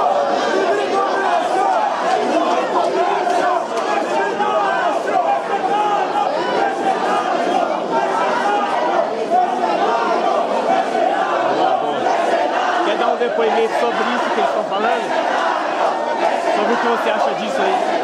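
A crowd of young people chants and shouts loudly in an echoing hall.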